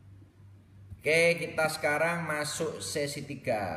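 A young man speaks loudly and with animation close to a microphone.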